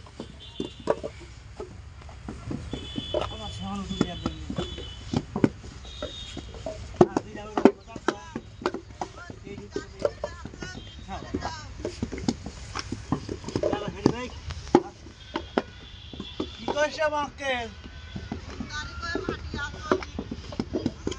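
Bricks knock and tap against the ground as they are set down.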